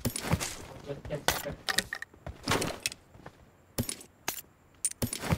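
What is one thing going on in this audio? Short sharp clicks sound as items are picked up.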